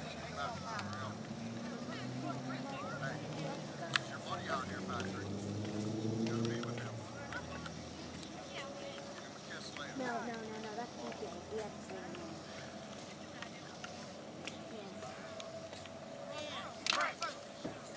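Young boys talk and call out nearby, outdoors.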